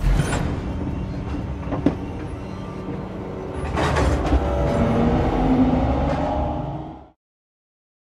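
A tram car rumbles steadily along its track.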